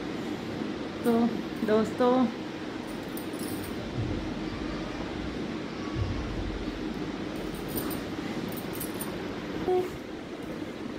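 A young woman speaks briefly and calmly close by.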